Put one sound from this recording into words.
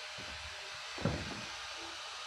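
A wooden board knocks down onto a pile of planks.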